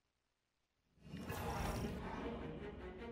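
A loud rushing whoosh of energy swells up suddenly.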